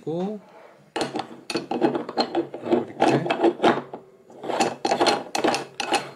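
A metal pot's top half scrapes and grinds as it is screwed on.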